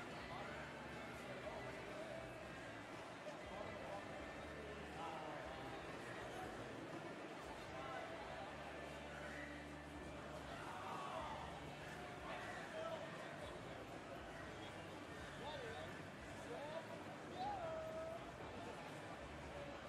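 A crowd murmurs and cheers faintly in a large echoing arena.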